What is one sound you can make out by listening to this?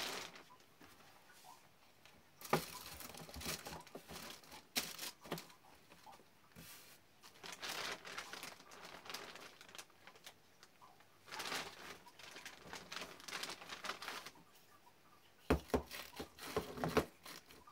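Items rustle and thump as they are packed into a cardboard box.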